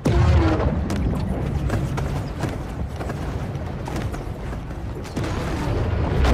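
A rumbling underwater roar swells and churns.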